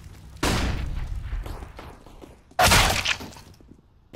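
Pistol shots crack loudly nearby.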